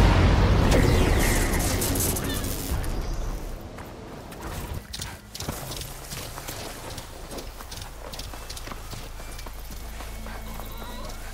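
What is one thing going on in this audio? Footsteps thud on sand and grass as someone runs.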